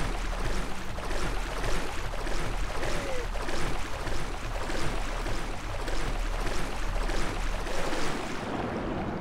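Water splashes in a steady rhythm as a swimmer strokes along the surface.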